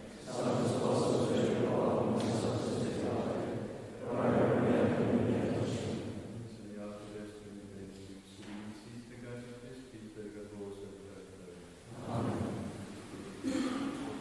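A group of men chant together in a large echoing hall.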